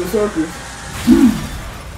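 A monster lets out a loud, deep roar.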